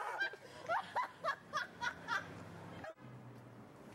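A young woman laughs loudly nearby.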